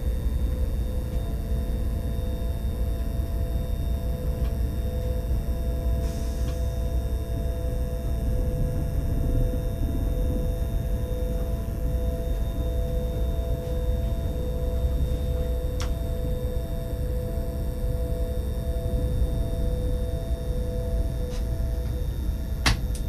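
A train's electric motor hums with a steady whine.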